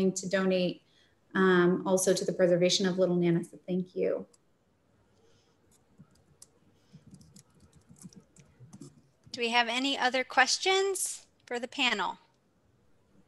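A woman speaks calmly through a microphone on an online call.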